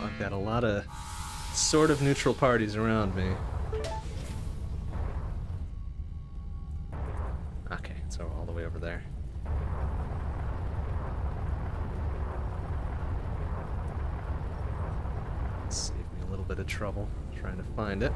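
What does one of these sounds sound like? A low spaceship engine rumbles steadily.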